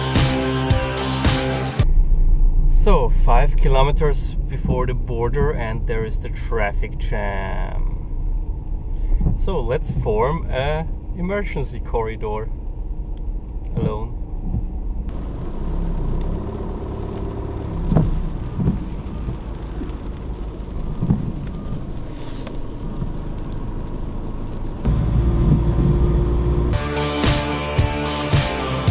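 Tyres rumble on a motorway, heard from inside a car.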